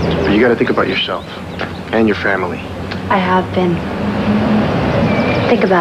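A young man speaks quietly nearby.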